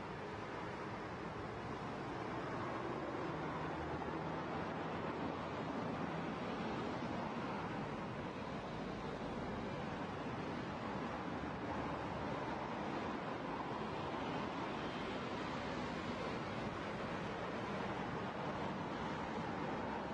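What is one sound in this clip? A car's tyres hum steadily on the road as it drives along.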